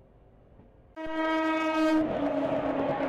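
A locomotive horn blares loudly from close by.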